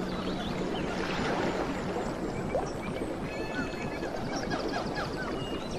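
A small waterfall splashes steadily into a stream.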